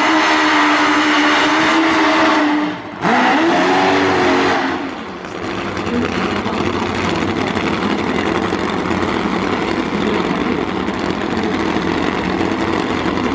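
A racing motorcycle engine roars loudly at high revs.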